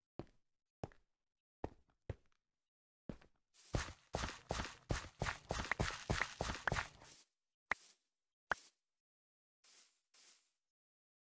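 Game footsteps thud on grass and dirt.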